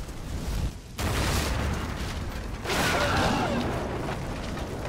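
Flames roar in a sudden burst.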